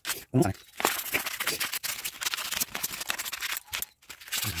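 A metal tool scrapes and rasps against metal.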